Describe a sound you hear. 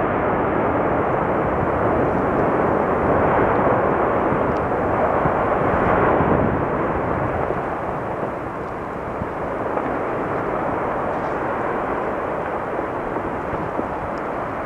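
A volcano erupts with a deep, steady roar.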